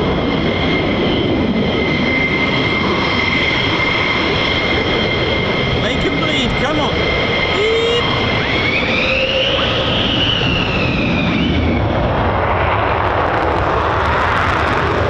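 A jet engine roars loudly with a high, steady whine.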